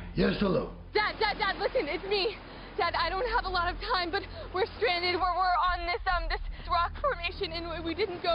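A young woman speaks frantically and tearfully into a phone, close by.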